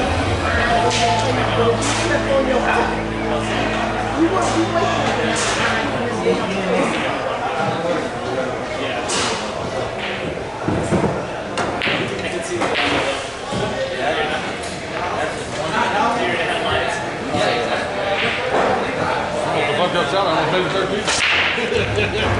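Pool balls clack sharply against each other.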